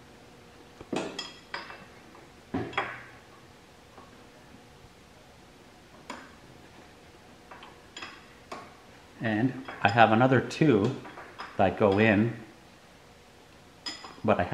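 Metal clicks and clanks as a tool works on bolts.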